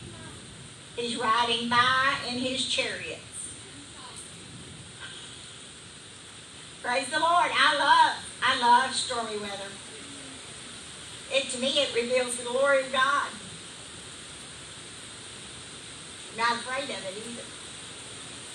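A woman speaks calmly through a microphone in a large echoing hall, with pauses between phrases.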